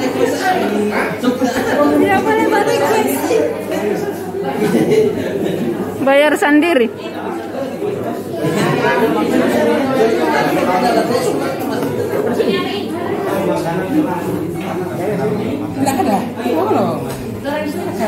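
Several men talk and laugh loudly nearby.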